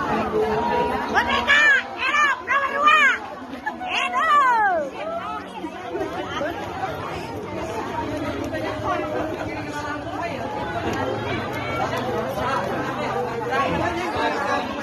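A large crowd of people chatters outdoors.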